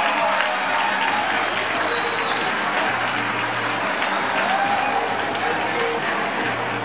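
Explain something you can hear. A large crowd murmurs and chatters loudly in an echoing hall.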